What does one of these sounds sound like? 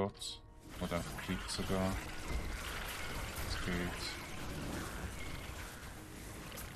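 Magic spells crackle and burst in quick succession during a fierce battle.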